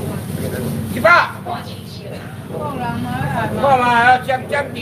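A man speaks loudly nearby, calling out.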